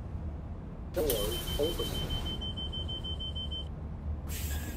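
A bus door chime beeps repeatedly as the doors open.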